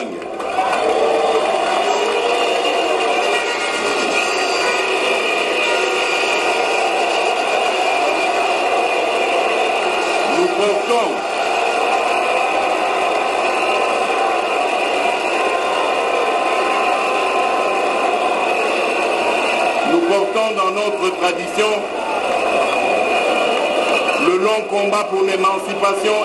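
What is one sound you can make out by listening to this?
A large crowd cheers and sings loudly outdoors.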